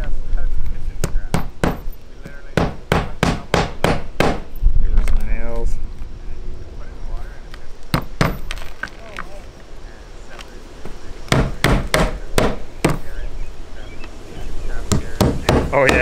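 A hammer strikes roofing nails in quick sharp blows.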